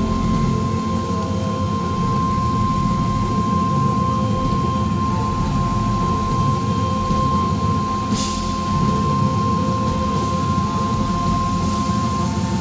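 Drums and cymbals pound out a rock beat.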